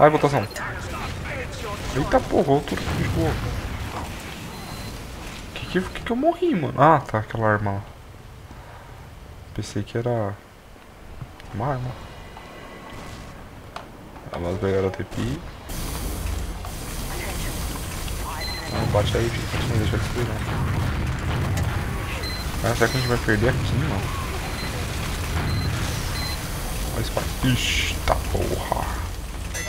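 Gunfire and explosions from a video game ring out.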